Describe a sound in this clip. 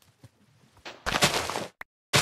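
A plant stalk is struck and breaks with a sharp crunch.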